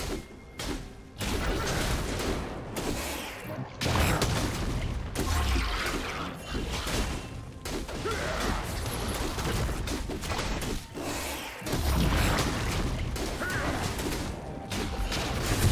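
Magic spells whoosh and crackle in a busy fight.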